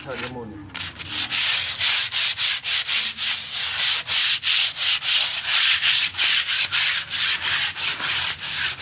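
Sandpaper rubs rapidly back and forth on concrete.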